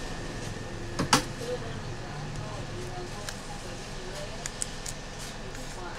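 A thin metal blade clicks and taps against a phone's edge.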